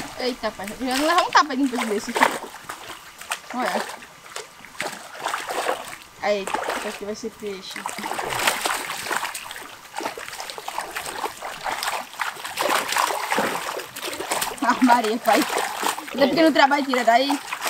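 Water splashes close by.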